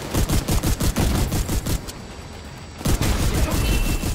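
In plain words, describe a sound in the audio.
An explosion booms with crackling fire.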